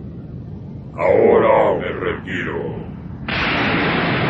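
A deep creature roars loudly.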